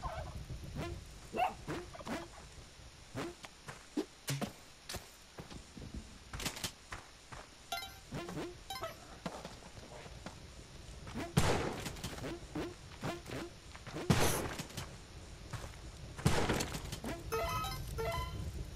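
Short game sound effects click and chime.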